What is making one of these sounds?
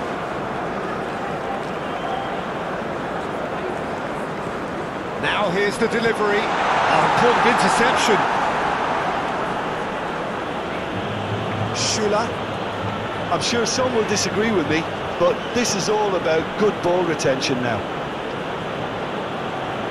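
A large stadium crowd murmurs and roars steadily, swelling for a few seconds.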